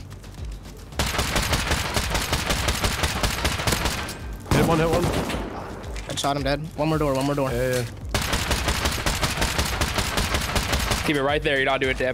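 A rifle fires in rapid, steady bursts.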